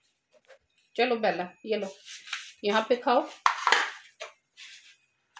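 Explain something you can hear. A woman speaks with animation nearby.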